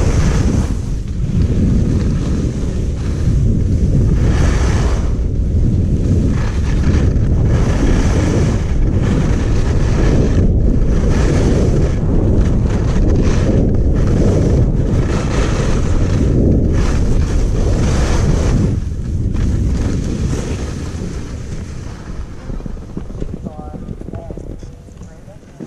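Wind rushes loudly past, easing off toward the end.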